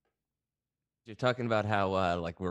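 Several men talk over an online call.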